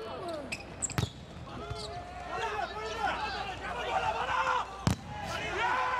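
A volleyball is spiked with a sharp smack.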